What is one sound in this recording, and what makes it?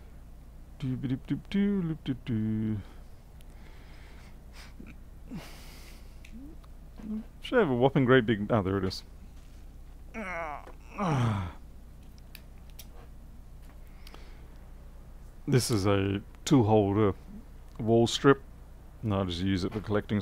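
A man talks calmly and casually, close to a microphone, with pauses.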